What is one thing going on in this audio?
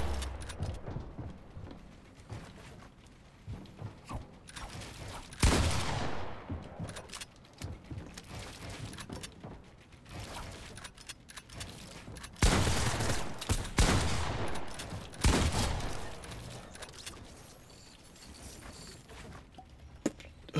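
Building pieces clack into place in a game.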